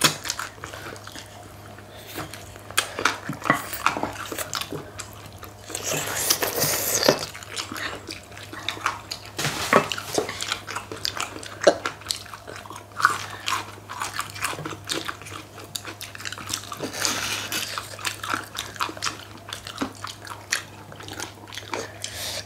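People chew and crunch fried chicken close by.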